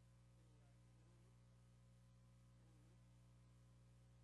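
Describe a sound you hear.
A man speaks quietly and faintly into a microphone.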